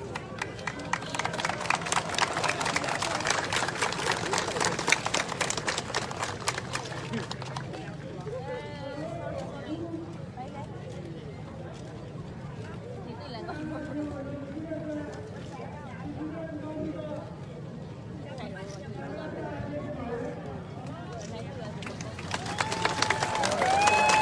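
A crowd claps and cheers loudly outdoors.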